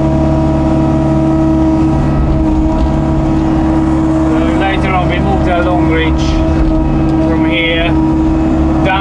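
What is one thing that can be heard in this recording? An excavator engine rumbles steadily close by.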